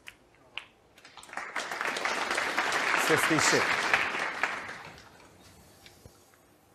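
An audience applauds, swelling and then fading.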